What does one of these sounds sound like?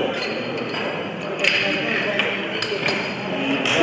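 Metal weight plates clank against a barbell.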